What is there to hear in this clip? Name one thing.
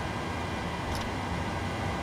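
A switch clicks once.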